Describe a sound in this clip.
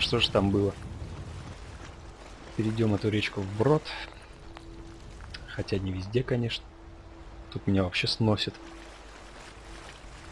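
A horse splashes while swimming through water.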